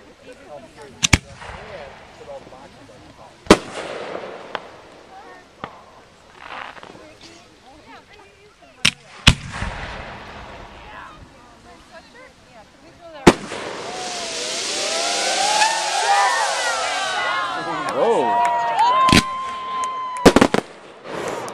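Fireworks bang outdoors.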